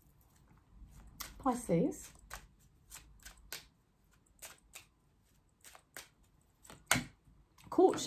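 Cards riffle and snap as they are shuffled.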